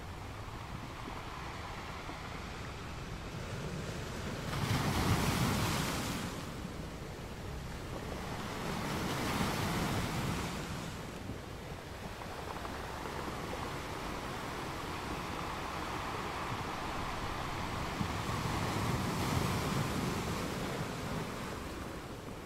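Water washes and hisses over rocks.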